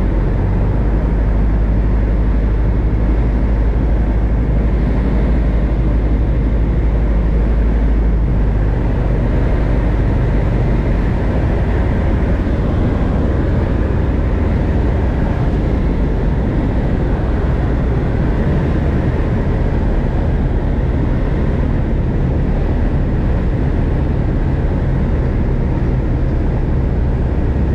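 Wind rushes against the cockpit.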